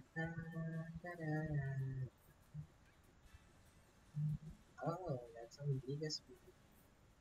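Short squeaky game jingles play.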